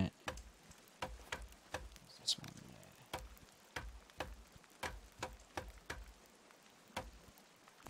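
An axe chops into a tree trunk with steady, dull knocks.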